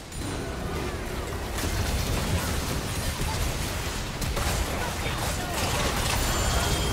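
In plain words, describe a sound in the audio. Game spell effects crackle and blast during a fight.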